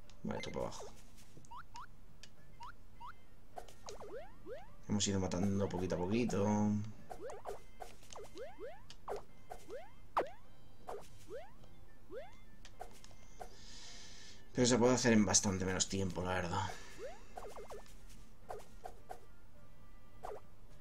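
Short rising electronic bleeps sound as a game character jumps.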